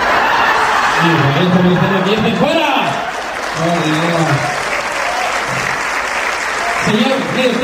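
A man speaks loudly and with animation through a microphone on a loudspeaker.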